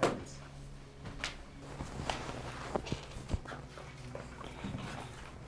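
A man gets up from a bed with a rustle.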